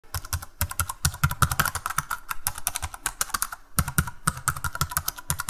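Fingers type quickly on a keyboard.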